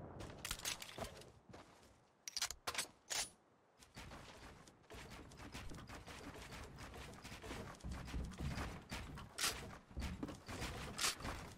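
Quick building thuds and clicks sound in rapid bursts.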